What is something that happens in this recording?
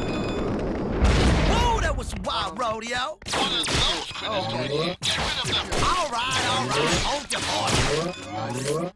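Guns fire in rapid bursts.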